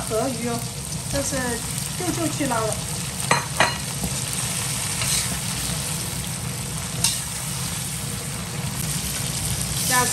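Food sizzles in a hot wok.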